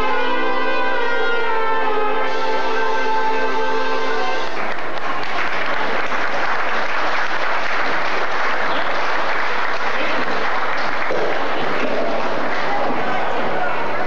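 A live band plays brassy dance music in a large, echoing hall.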